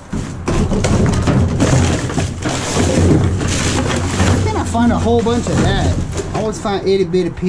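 Plastic bags and bottles rustle and crinkle as trash is rummaged through.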